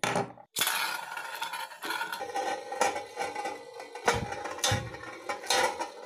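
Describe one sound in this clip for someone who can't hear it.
A spinning top whirs steadily on a ringing metal plate.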